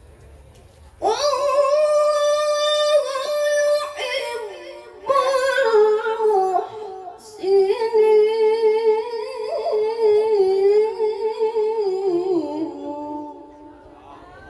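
A woman sings loudly into a microphone.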